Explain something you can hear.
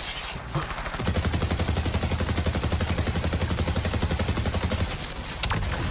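A rapid-fire gun shoots in a fast burst.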